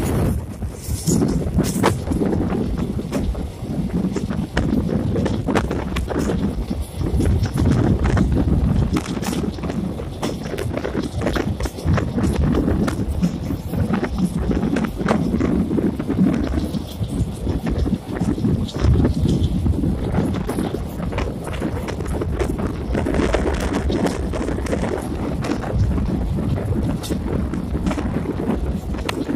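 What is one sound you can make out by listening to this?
A passenger train rolls along at speed, its wheels clattering over rail joints.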